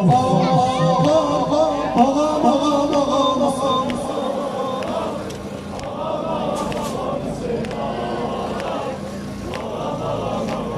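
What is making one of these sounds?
A man speaks loudly through a microphone and loudspeakers outdoors.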